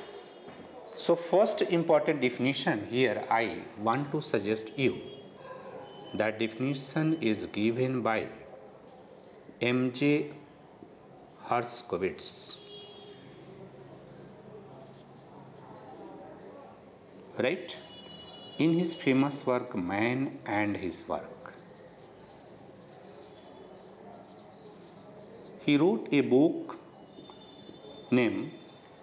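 A man lectures calmly and clearly, close by.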